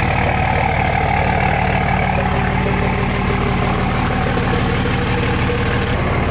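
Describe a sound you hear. A large diesel truck engine rumbles steadily as the truck rolls slowly forward.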